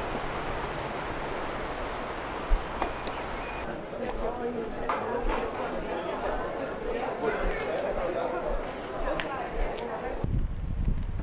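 People chatter and murmur nearby in a busy street.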